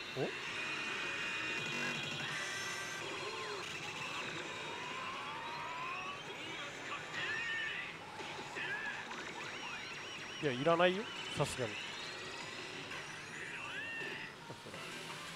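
A slot machine plays bright electronic jingles and chimes.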